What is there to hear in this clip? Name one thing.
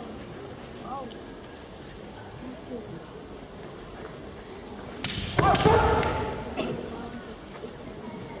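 Bamboo swords clack together in a large echoing hall.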